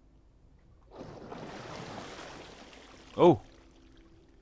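Water rushes and splashes as a huge whale surfaces.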